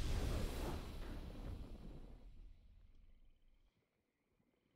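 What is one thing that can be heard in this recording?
A triumphant game victory sound booms and fades away.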